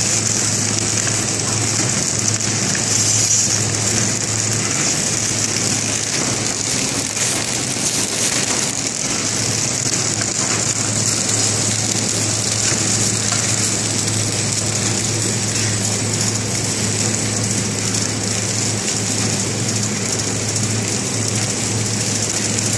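A packaging machine hums and whirs steadily.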